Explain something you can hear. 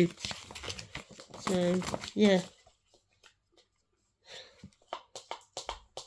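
Paper rustles and crinkles in a hand.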